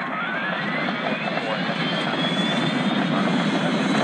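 Jet engines whine as they spool up to takeoff power.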